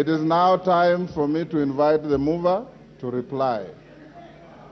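A man speaks loudly and firmly into a microphone in a large hall.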